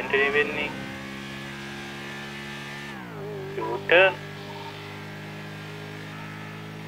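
A motorcycle engine hums steadily and drops in pitch as it shifts gear.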